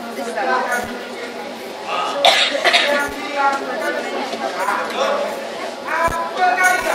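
A man speaks loudly and dramatically through a microphone in a large echoing hall.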